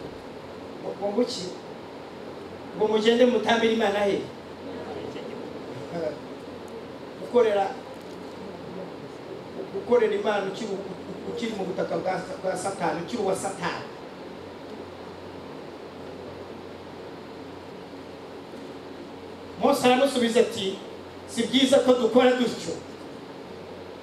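A man speaks into a microphone with animation, in bursts with pauses, heard through loudspeakers in a reverberant hall.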